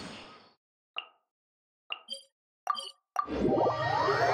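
Soft game menu clicks sound.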